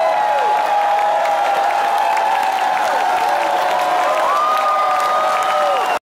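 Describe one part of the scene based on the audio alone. A bowed string instrument holds long notes that slide between pitches.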